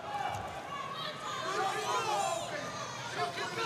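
Wrestling shoes squeak on a mat.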